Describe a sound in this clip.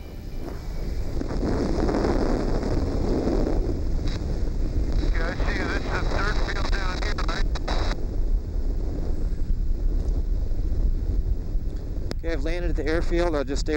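An ultralight aircraft engine drones steadily.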